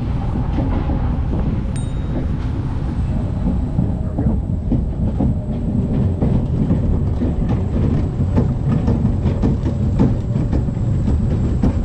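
A roller coaster car rumbles and clatters along its track.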